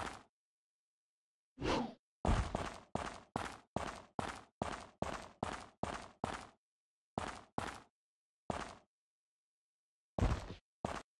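Footsteps run across stone, echoing.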